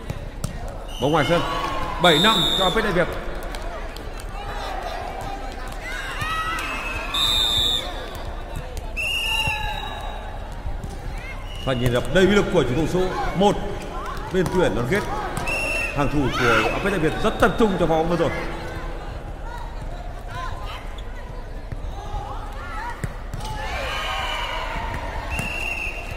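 Young women shout and call out to one another in a large echoing hall.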